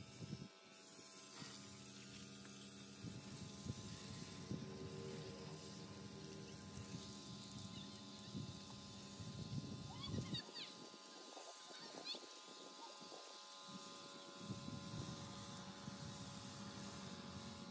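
A pressure washer sprays water hard against a tractor.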